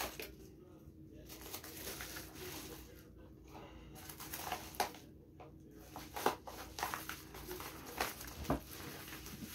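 Paper crinkles and rustles as a padded envelope is opened.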